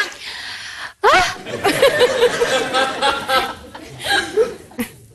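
A second woman talks and laughs expressively into a microphone.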